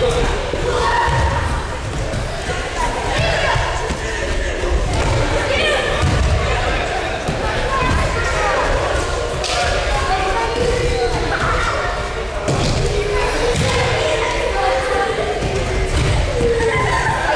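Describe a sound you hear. Many children chatter and shout throughout a large echoing hall.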